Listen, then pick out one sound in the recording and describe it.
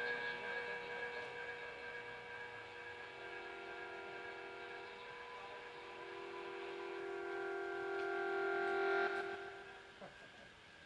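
A live band's last chord rings out on electric guitars and fades away.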